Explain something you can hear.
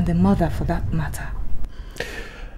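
A woman speaks quietly close by.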